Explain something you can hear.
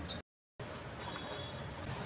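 Water bubbles at a rolling boil in a pot.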